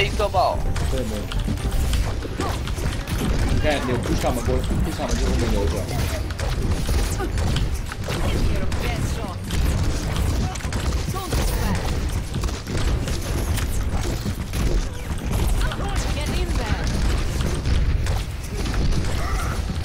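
Explosions boom and thud.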